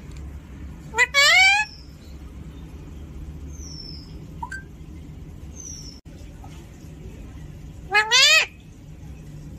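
A parrot screeches loudly up close.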